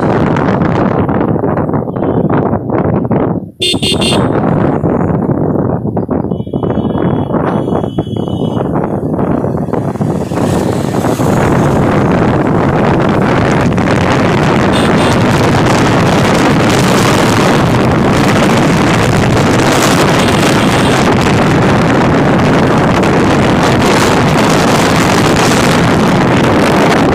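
Wind roars against the microphone while riding on a moving motorbike.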